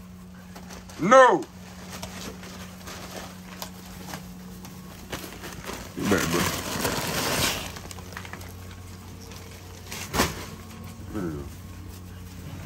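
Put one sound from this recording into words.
A puppy yelps and whines.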